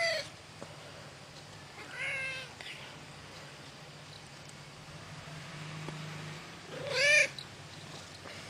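A cat meows loudly close by.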